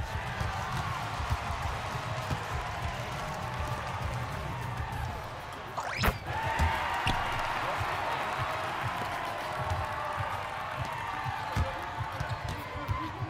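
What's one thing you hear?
Sneakers squeak on a basketball court.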